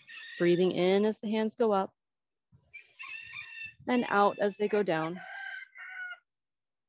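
A woman speaks clearly and calmly into a microphone.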